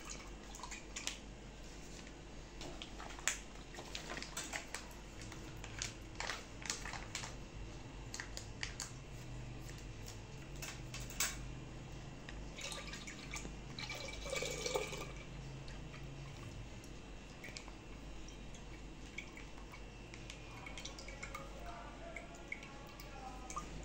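A plastic packet crinkles and rustles in someone's hands.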